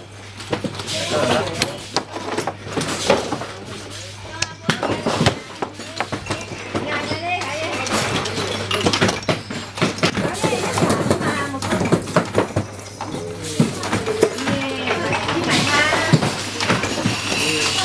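Small metal parts clink and rattle as a hand sorts through them.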